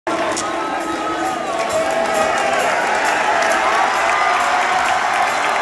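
A large crowd chatters and cheers in a big echoing gym.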